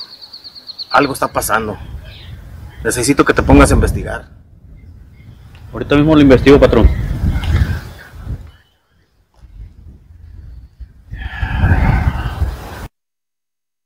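A middle-aged man speaks calmly nearby outdoors.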